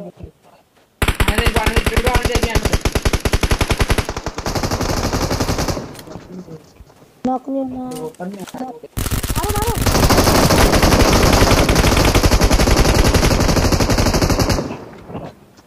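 Rapid automatic gunfire rattles in long bursts.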